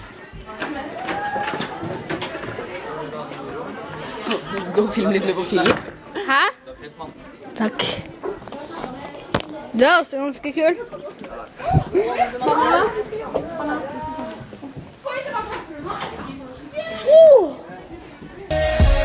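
Young people talk and laugh close by in an echoing room.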